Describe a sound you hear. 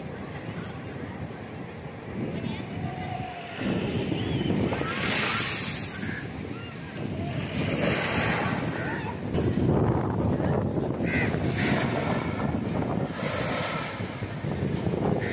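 Ocean waves break and wash onto the shore.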